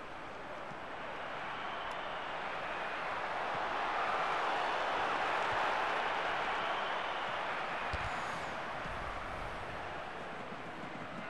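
A stadium crowd roars, swelling and then fading.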